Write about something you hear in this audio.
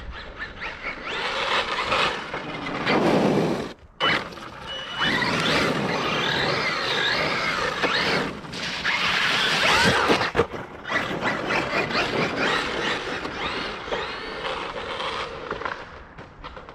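A small electric motor whines, rising and falling in pitch as a toy truck speeds back and forth.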